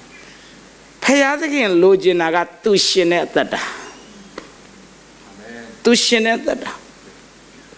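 A man speaks with animation into a microphone in a large, echoing hall.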